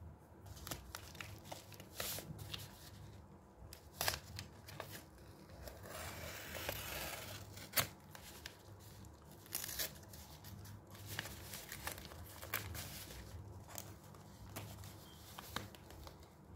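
A padded paper mailer crinkles and rustles as it is handled.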